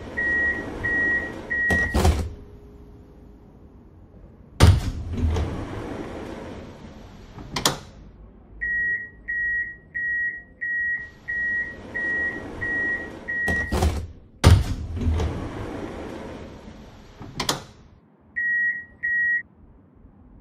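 A tram door warning beeps in quick, even pulses.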